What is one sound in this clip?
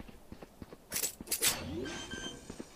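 A knife is drawn with a sharp metallic swish.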